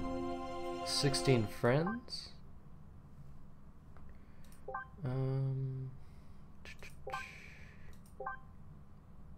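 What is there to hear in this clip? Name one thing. Short electronic menu chimes blip now and then.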